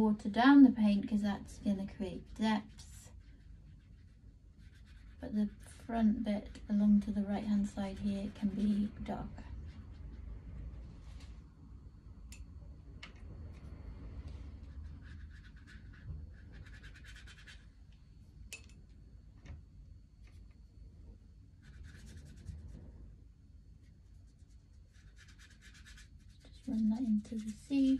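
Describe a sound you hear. A brush scratches softly on paper.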